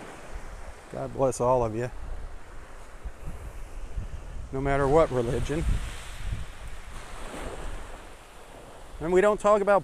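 Wind blows across the open shore.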